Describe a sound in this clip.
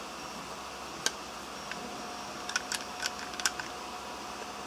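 Plastic parts click and snap as they are handled.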